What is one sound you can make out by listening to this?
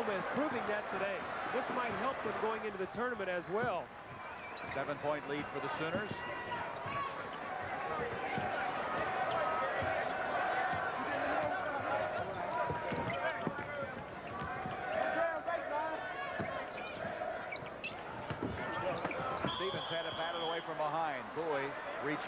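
A large crowd cheers and murmurs in an echoing arena.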